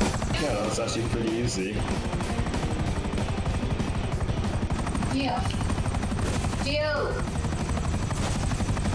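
Helicopter rotor blades thump steadily close by.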